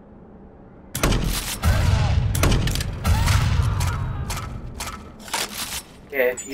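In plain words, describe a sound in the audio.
A rifle fires loud bursts of shots close by.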